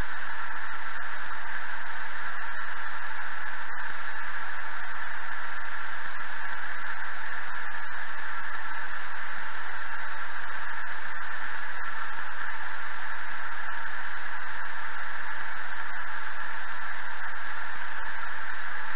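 Rain patters steadily on a windshield.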